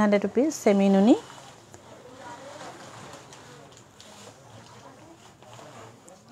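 Fabric rustles and flaps as cloth is unfolded.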